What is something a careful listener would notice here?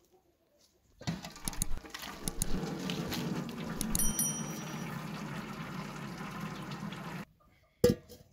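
Wet noodles slide and patter into a metal colander.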